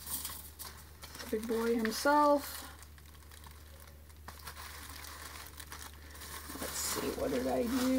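Bubble wrap crinkles and rustles in a woman's hands.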